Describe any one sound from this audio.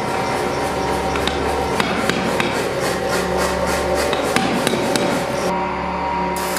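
A power hammer pounds hot metal in rapid, steady blows.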